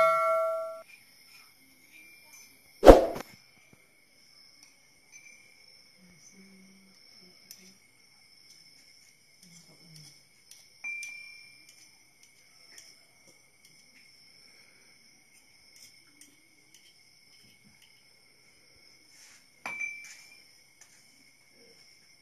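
Metal dishes clink as they are washed.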